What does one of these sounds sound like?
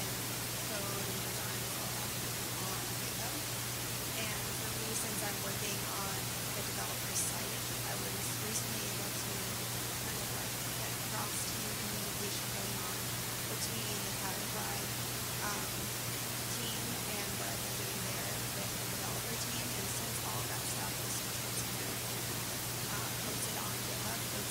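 A woman speaks calmly into a microphone in a large room.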